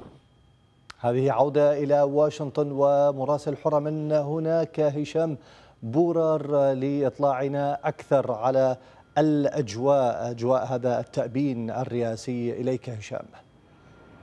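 A man speaks clearly and calmly into a microphone, as if presenting the news.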